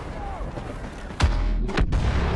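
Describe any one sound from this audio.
A blaster fires sharp laser shots.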